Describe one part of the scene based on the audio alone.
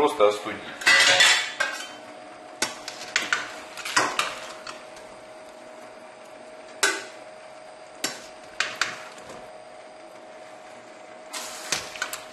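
Mussel shells clatter onto a metal lid.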